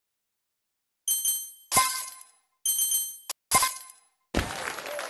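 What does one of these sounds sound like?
Bright game chimes ring out as coins are picked up.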